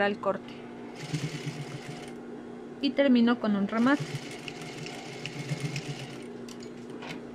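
A sewing machine whirs as it stitches in short bursts.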